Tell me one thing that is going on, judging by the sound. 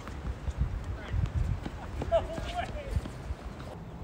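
A tennis ball is struck by rackets back and forth outdoors.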